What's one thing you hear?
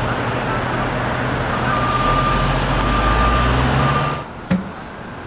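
A car drives past on a street.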